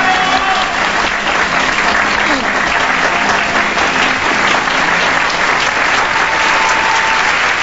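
A large crowd cheers and screams loudly.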